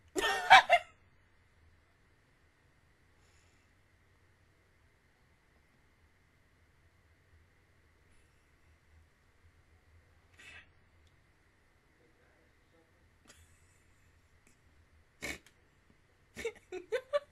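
A young woman laughs in short bursts close to a microphone.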